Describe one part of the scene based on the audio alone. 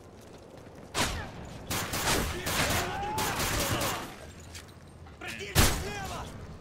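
Pistol shots crack sharply.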